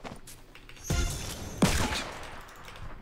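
A gun fires a few quick shots.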